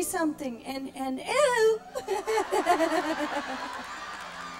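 A woman cries out emotionally through a microphone in a large hall.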